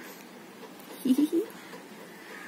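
A baby coos close by.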